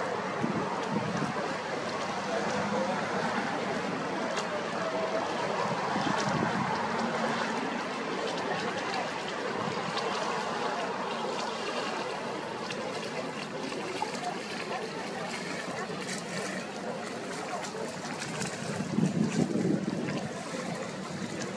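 Water laps and splashes gently against boat hulls, outdoors.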